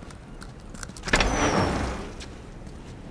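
A heavy door creaks and swings open.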